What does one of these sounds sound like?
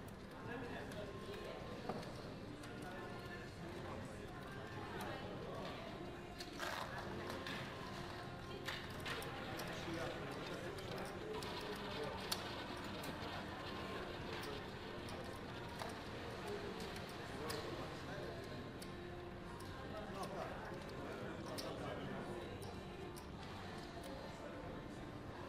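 Many men and women murmur and chatter in the background.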